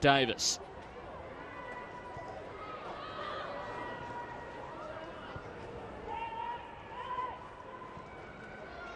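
Distant players call out faintly across an open outdoor field.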